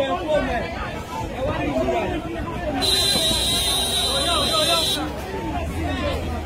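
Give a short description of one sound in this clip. A crowd of men and women shouts and chants loudly outdoors.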